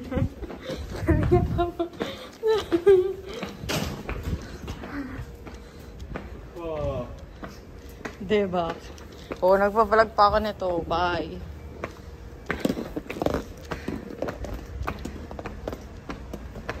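A suitcase bumps and clatters against stone steps.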